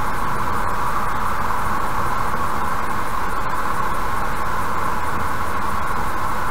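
A car drives steadily along a motorway with a constant road rumble.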